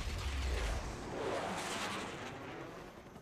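A jet plane roars past overhead.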